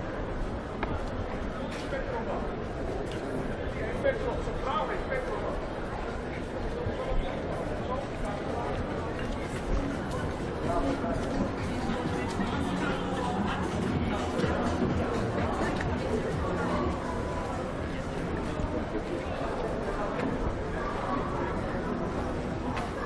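People chatter and murmur nearby outdoors.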